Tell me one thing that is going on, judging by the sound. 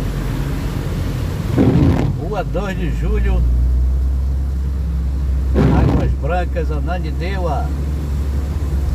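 A car's tyres hiss on a wet road.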